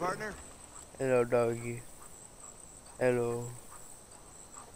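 A dog whines up close.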